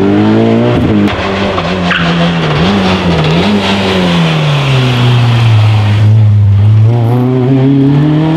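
A second rally car engine roars and changes pitch as the car climbs and passes close by.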